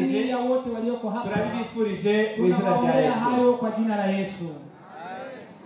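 Two men sing together loudly through microphones outdoors.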